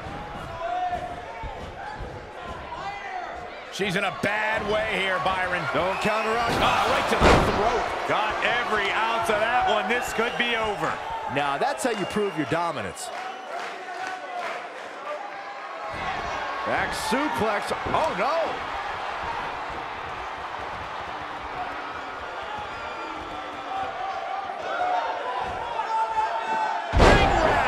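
A crowd cheers steadily in a large arena.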